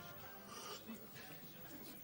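A man slurps a drink.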